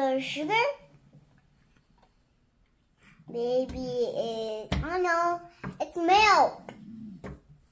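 A young child talks in a high, animated voice close by.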